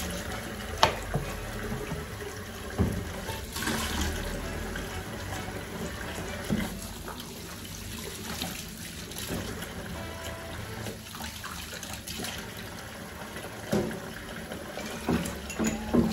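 Dishes clink and knock in a sink.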